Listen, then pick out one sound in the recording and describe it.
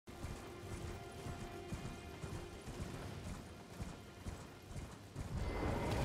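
A horse gallops, its hooves thudding on soft ground.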